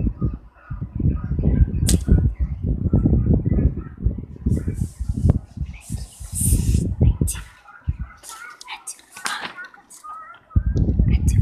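A blanket rustles and rubs close by.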